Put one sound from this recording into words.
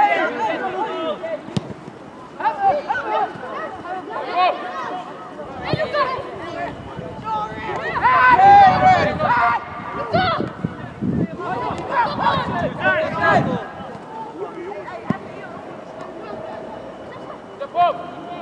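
Young male players shout and call to each other outdoors.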